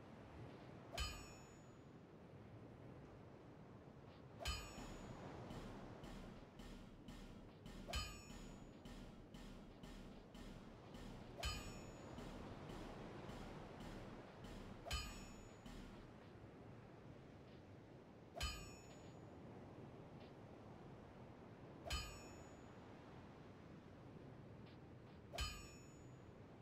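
A hammer strikes metal with a bright ringing clang, again every few seconds.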